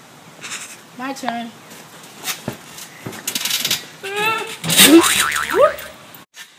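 Boys shout and laugh excitedly close by.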